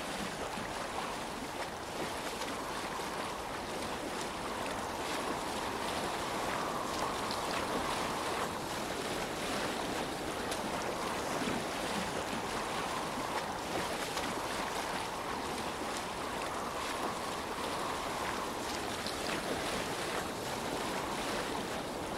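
Water splashes and rushes against the hull of a moving boat.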